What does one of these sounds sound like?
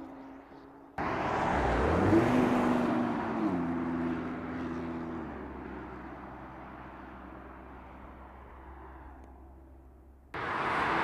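A car engine revs and shifts gears as the car passes close by.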